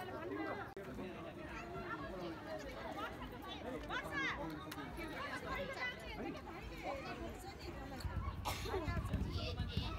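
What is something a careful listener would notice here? A crowd of men and women chatter close by, outdoors.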